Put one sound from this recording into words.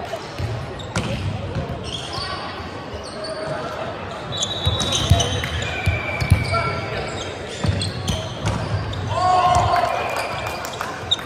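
A volleyball thuds as it is struck and bounces.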